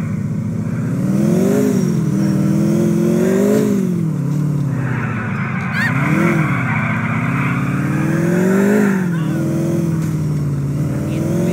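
A car engine revs up and down steadily as it drives.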